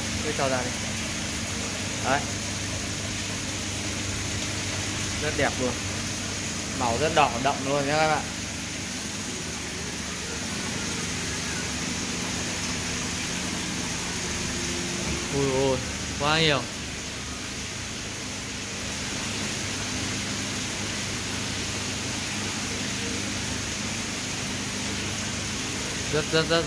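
Water bubbles and hums steadily.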